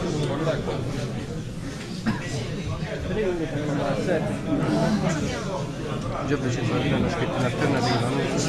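Several people talk over one another in the background.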